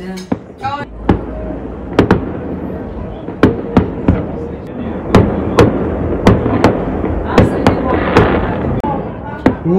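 Fireworks boom and crackle in the distance outdoors.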